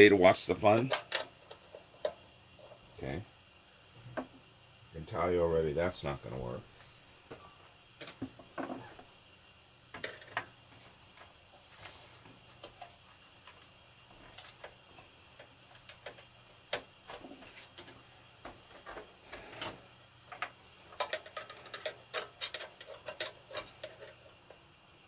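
Metal parts click and rattle as they are handled up close.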